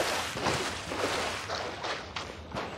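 Footsteps wade through shallow water.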